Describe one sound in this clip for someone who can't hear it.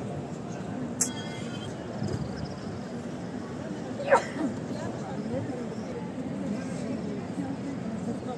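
A crowd murmurs softly all around in a large echoing hall.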